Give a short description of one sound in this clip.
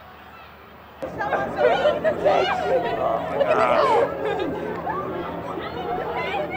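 A crowd shouts and whoops loudly nearby.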